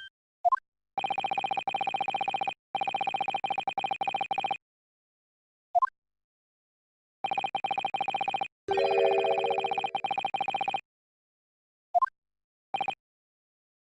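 Rapid electronic blips chatter in quick bursts.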